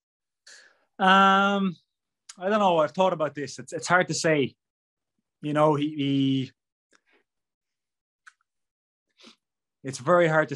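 A man speaks with animation over an online call.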